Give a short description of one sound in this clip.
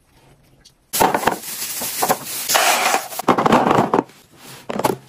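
Dried beans pour and rattle into a plastic box.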